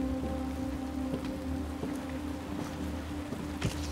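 Footsteps tread slowly across a hard floor.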